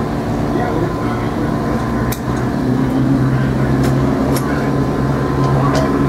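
Metal tools clink sharply against a motorbike wheel.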